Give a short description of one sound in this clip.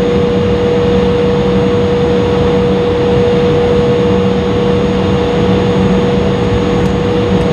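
An airliner rumbles as it taxis on the ground.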